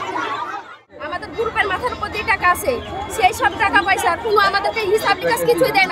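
A middle-aged woman speaks with animation into microphones close by.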